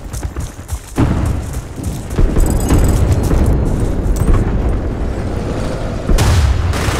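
A tank engine rumbles nearby.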